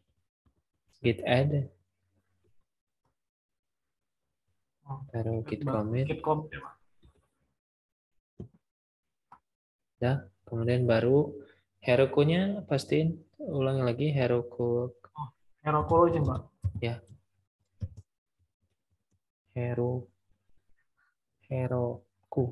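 A man talks calmly over an online call, in short bursts.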